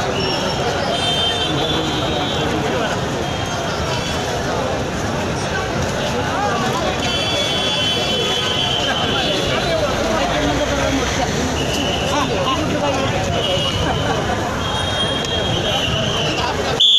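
Many footsteps shuffle on a paved road.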